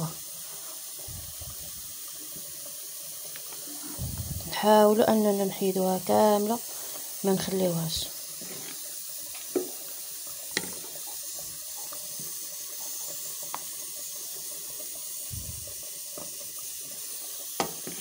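A spoon stirs and scrapes against a pot.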